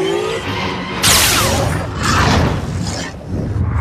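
Laser swords clash with sharp crackling bursts.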